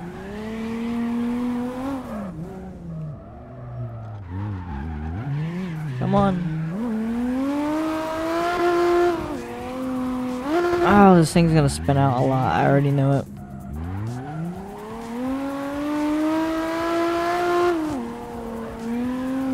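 Tyres squeal while sliding on tarmac.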